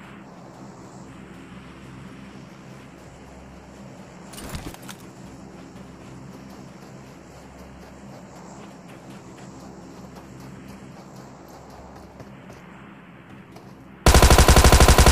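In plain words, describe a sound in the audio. Footsteps scrape on rocky ground.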